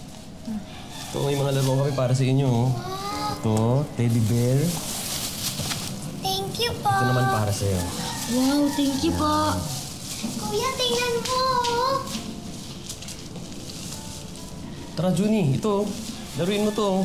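A child speaks excitedly nearby.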